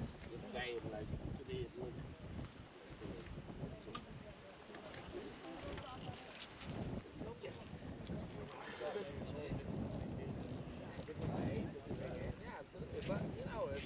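Several men talk casually nearby outdoors.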